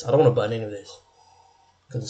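A young man sips from a glass.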